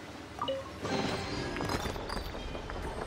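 A heavy sword swooshes through the air.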